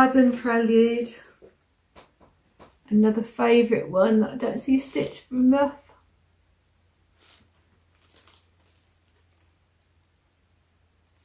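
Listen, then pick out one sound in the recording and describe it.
A card rustles in a woman's hands.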